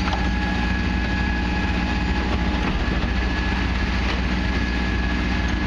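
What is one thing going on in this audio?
A garbage truck's lifter whines as it tips a wheeled bin.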